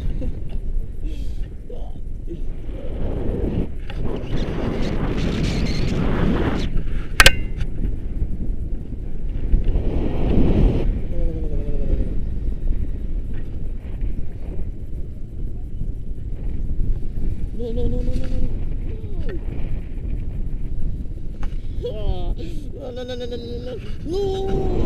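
Wind rushes loudly past a microphone, outdoors.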